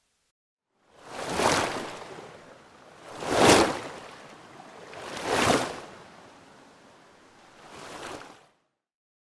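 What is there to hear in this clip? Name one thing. Water splashes and rushes in swelling bursts.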